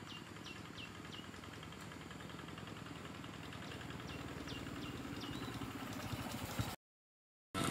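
A motorbike engine hums in the distance and grows louder as it approaches.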